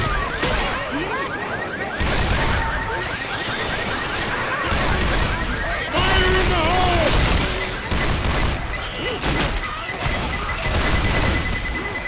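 Zombies snarl and groan close by.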